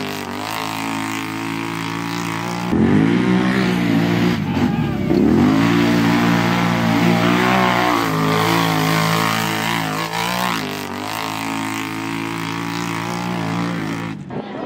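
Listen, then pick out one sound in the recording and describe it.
A quad bike's engine roars and revs loudly.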